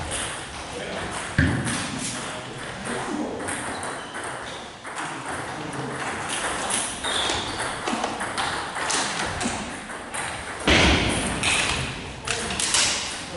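A man talks casually in a large echoing hall.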